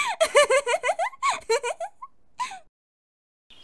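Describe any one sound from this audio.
A young woman speaks cheerfully and close up.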